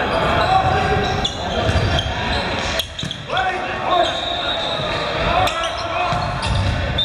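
Young men shout and call out across the court.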